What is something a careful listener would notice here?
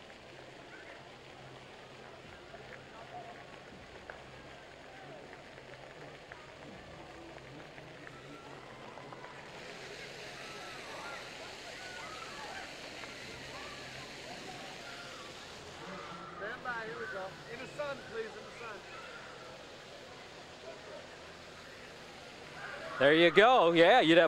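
Fountain jets splash and hiss steadily outdoors.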